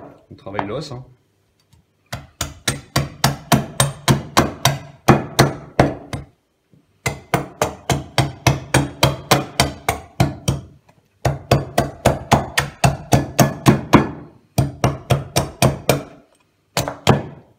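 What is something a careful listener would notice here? A knife scrapes meat off a bone in quick, rhythmic strokes.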